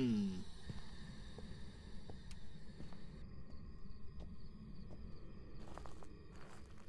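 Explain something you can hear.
Footsteps thud slowly and evenly on wooden boards.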